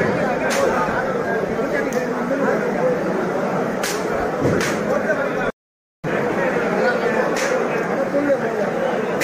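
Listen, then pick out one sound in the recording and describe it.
A large group of men chant together loudly, close by.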